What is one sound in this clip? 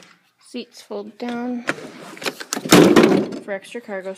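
A car seat folds down with a thud.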